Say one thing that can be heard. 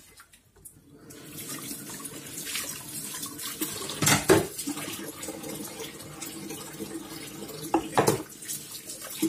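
Water runs from a tap and splashes steadily.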